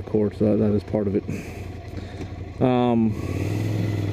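A motorcycle engine revs in short, sharp bursts close by.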